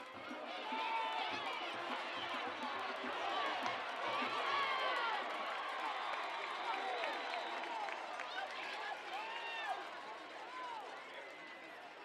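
A crowd of spectators cheers and shouts in outdoor stands.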